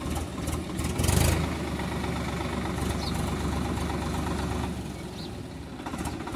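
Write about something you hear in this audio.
Water splashes and churns around tractor wheels.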